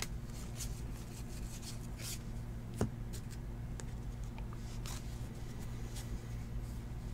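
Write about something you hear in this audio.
Cards softly flick and rustle as hands sort through them.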